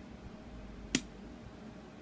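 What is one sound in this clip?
A switch clicks once.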